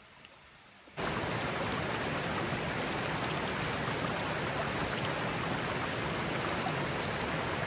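Water rushes steadily over rocks.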